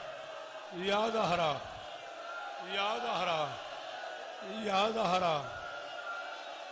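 A crowd of men chants loudly in unison in short repeated bursts.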